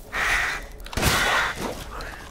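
A shotgun fires with a loud blast.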